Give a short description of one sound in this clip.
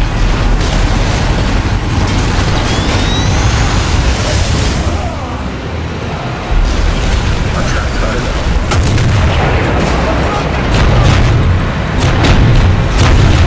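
Heavy explosions rumble and boom.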